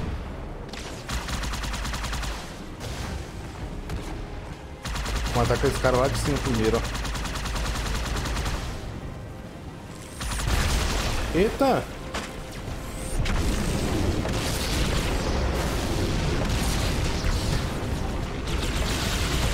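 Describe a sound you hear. Plasma guns fire in rapid bursts.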